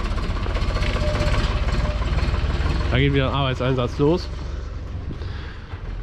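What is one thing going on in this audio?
A tractor engine chugs steadily nearby.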